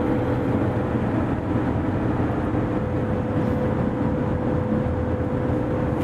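Tyres roll steadily on the road surface.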